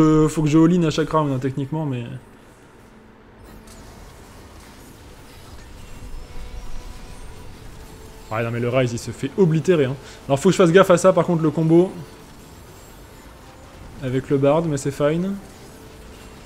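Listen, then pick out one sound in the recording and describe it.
A young man talks with animation into a close microphone, in short bursts.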